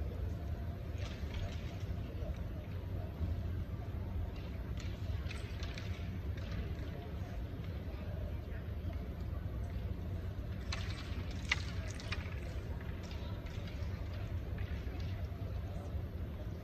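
A low murmur of voices fills a large hall.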